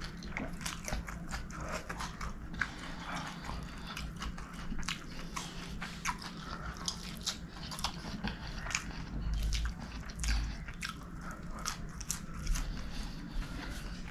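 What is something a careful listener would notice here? A man chews food loudly and wetly, close to a microphone.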